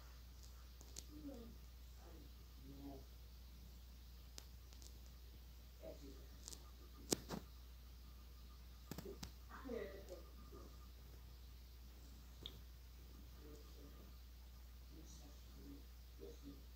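A woman speaks softly close by.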